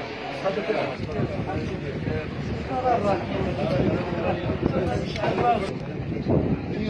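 Several men greet each other warmly, talking over one another.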